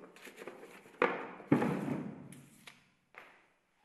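A wooden drawer bumps shut.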